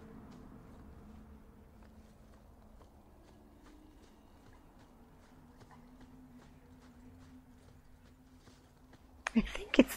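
Footsteps thud on dirt and stone.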